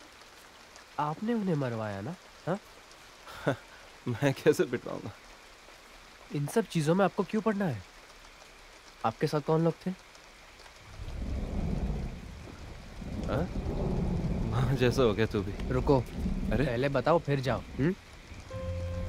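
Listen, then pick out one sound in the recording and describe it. A young man speaks tensely at close range.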